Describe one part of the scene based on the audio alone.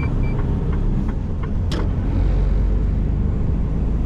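A van drives past in the other direction.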